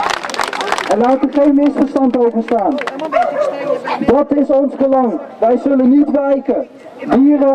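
A man speaks loudly through a megaphone loudspeaker.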